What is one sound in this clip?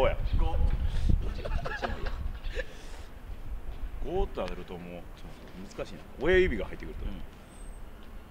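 Two young men talk and exclaim with animation outdoors.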